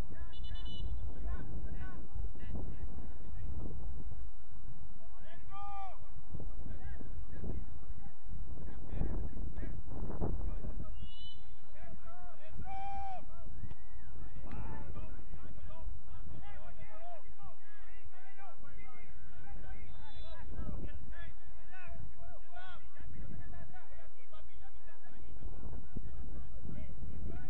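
Young players shout to each other across an open field at a distance.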